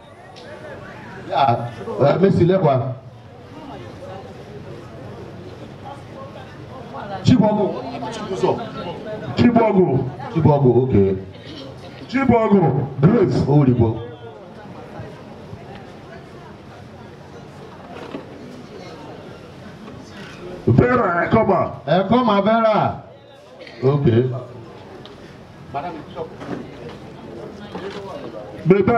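A crowd murmurs softly in the background.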